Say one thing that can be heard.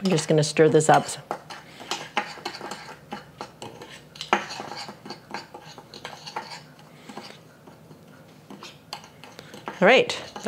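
A metal spoon scrapes and clinks against a small bowl.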